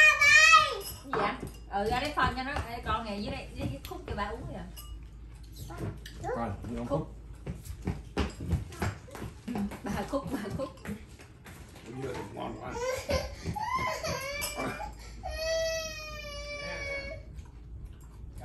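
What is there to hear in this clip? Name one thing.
Chopsticks and bowls clink on a table.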